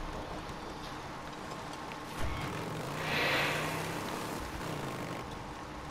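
Tyres crunch over rough ground and gravel.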